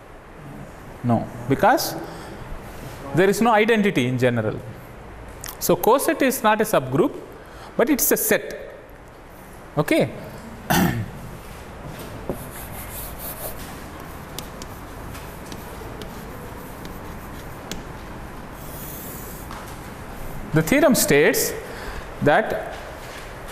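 A man speaks calmly, as if lecturing.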